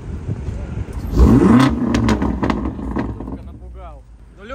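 A sports car engine revs loudly and roars.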